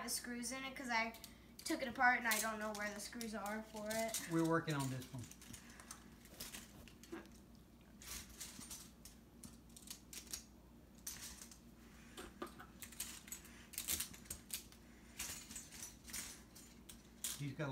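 Small toy pieces click and clatter on the floor.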